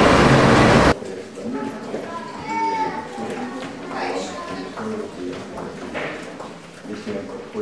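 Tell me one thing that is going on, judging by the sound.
Footsteps echo down a long corridor.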